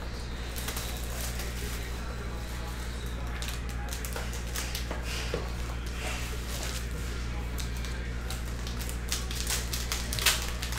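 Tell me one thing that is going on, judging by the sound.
Plastic wrapping crinkles and rustles in hands.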